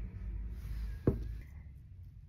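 A lid knocks down onto a wooden table.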